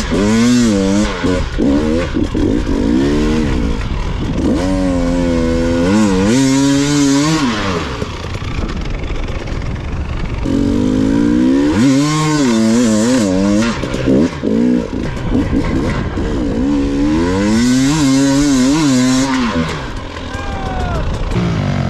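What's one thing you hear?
A dirt bike engine revs hard and close, rising and falling in pitch.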